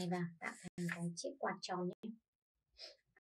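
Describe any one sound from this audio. A young woman speaks calmly and close by.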